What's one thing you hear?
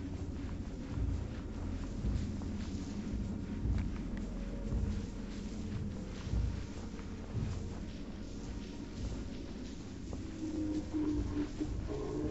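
Footsteps shuffle softly through sand.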